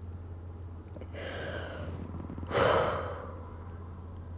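A woman sighs heavily close by.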